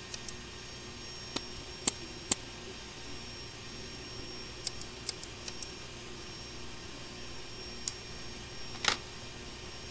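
Switches click several times.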